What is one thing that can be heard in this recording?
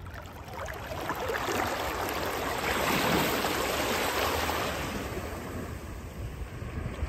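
Small waves lap and wash gently over the shore, swelling and fading.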